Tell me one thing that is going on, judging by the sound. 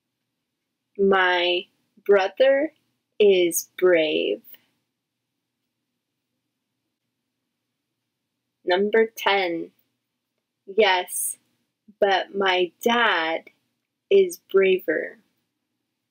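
A woman speaks with animation close to a microphone, in short bursts with pauses.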